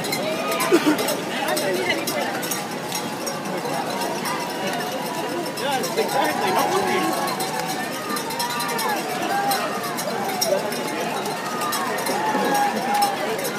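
Many runners' footsteps patter on pavement.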